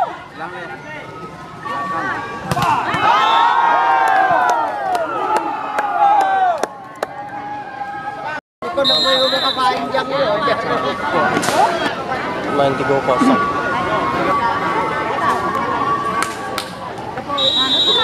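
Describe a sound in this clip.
A crowd cheers and chatters loudly outdoors.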